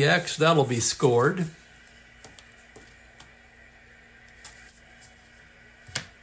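Paper cards rustle as they are handled.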